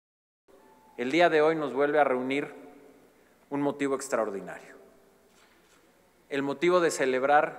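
A man gives a speech into a microphone, speaking calmly.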